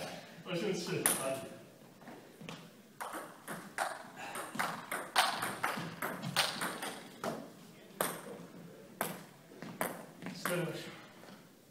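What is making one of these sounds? A ping-pong ball clicks back and forth on paddles and a table.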